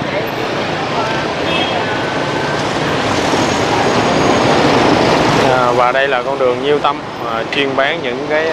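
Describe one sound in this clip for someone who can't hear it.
A bus engine rumbles loudly as the bus drives close by.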